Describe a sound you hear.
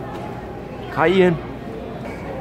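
A toddler squeals briefly, close by.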